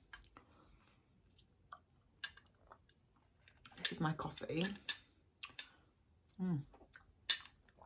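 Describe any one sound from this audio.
A woman sips a drink through a straw.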